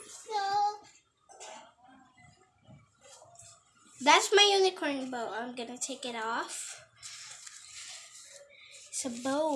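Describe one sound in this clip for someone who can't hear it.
A young girl talks and sings animatedly close by.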